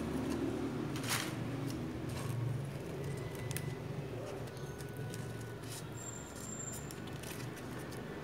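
A sheet of paper rustles as hands handle it.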